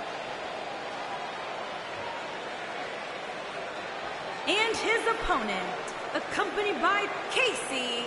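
A large crowd cheers and whistles in a big arena.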